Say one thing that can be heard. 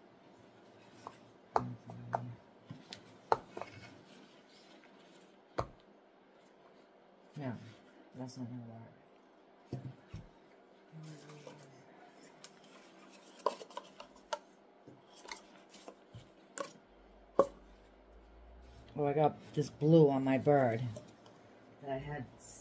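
Objects knock and clatter on a table.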